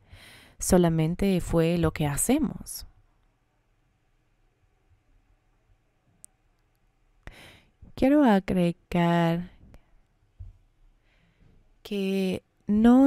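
A woman speaks with animation into a microphone, heard through a loudspeaker.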